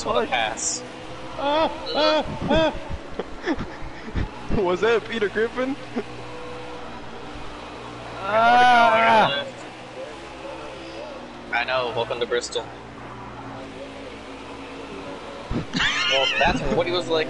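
Racing car engines roar steadily.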